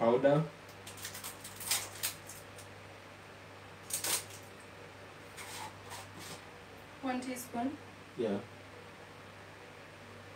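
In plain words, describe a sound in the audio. Dishes and utensils clink on a counter.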